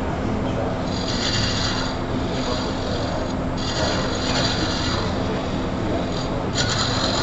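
A gouge scrapes and shears against spinning wood in bursts.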